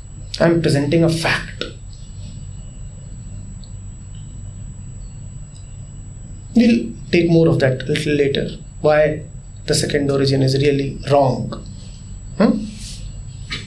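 A man speaks calmly and thoughtfully, close to a microphone, with pauses.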